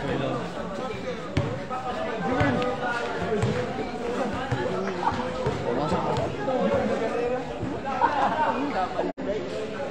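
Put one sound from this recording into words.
Sneakers squeak and shuffle on a court floor.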